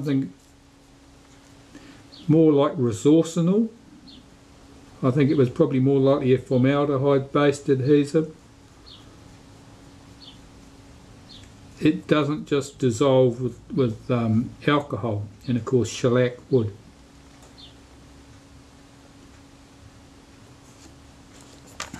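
A small tool scrapes lightly on a sheet of paper.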